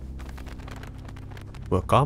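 Birds flap their wings as they take off.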